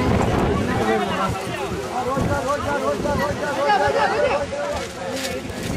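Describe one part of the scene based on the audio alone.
A crowd of men talk and chatter loudly all around, close by.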